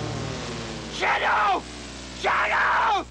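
A man shouts gruffly, close by.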